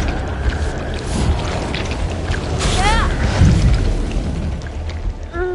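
A deep, muffled underwater rumble goes on steadily.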